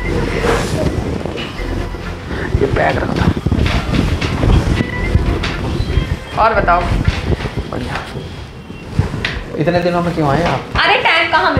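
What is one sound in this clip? A woman talks playfully nearby.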